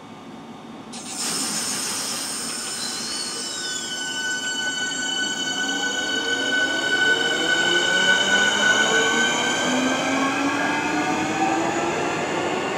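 A train's electric motors whine loudly, shifting in pitch.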